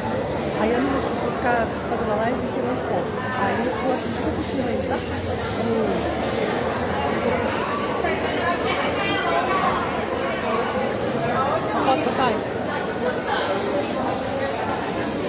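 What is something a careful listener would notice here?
A crowd of men and women chatters throughout in a large echoing hall.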